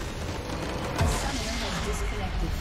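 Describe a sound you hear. A base structure explodes with a loud boom.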